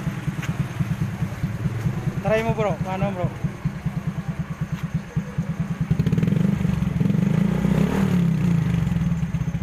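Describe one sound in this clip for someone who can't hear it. A motorcycle engine idles with a steady chugging beat, then revs a little louder.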